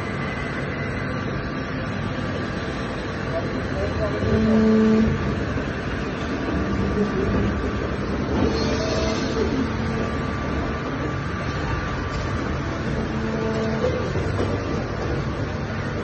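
Industrial machinery hums steadily.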